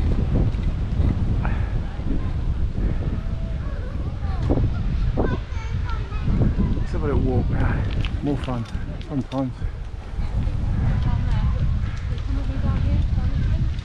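Bicycle tyres roll on pavement.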